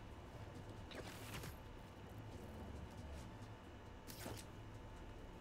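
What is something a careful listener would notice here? Air whooshes past in short, sharp bursts as a figure swings on a line.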